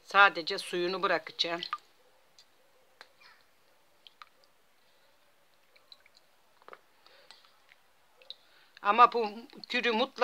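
Small pieces of food drop softly into a pot of liquid.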